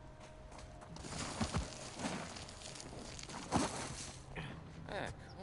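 Loose gravel rushes and scrapes as a figure slides down a slope.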